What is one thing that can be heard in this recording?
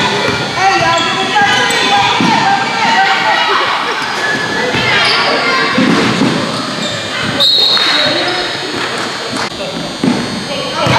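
Basketball sneakers squeak on a hardwood court in an echoing gym.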